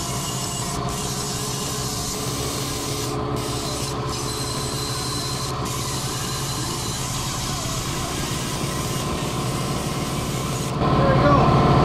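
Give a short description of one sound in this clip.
A small rotary grinder whines steadily against metal.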